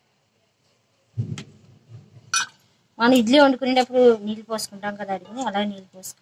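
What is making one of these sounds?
A metal lid clanks against a metal pot.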